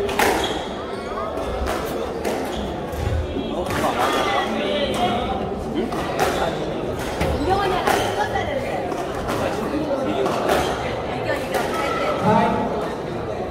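Sneakers squeak on the wooden floor.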